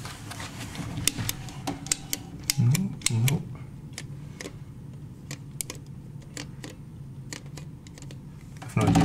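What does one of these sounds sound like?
A light switch clicks several times.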